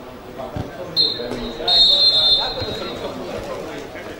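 A referee's whistle blows loudly outdoors.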